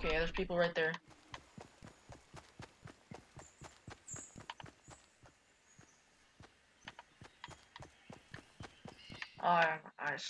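Quick footsteps run steadily over ground.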